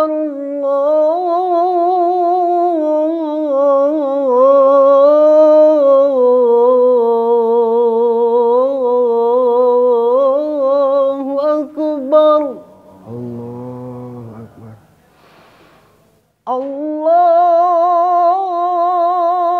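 A man chants loudly and melodiously through a microphone.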